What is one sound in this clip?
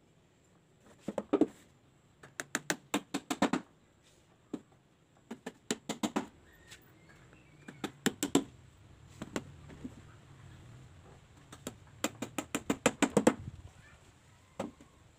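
A hammer taps nails into wood in quick bursts of sharp knocks.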